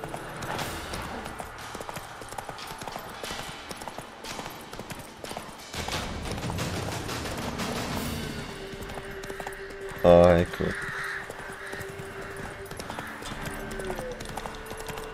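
A horse's hooves gallop along a dirt path.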